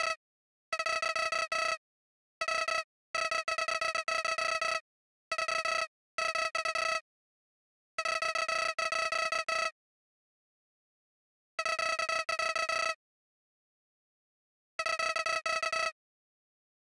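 Rapid, high-pitched electronic blips chatter in short bursts with pauses between them.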